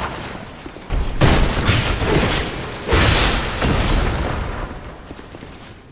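A heavy weapon swings and whooshes through the air.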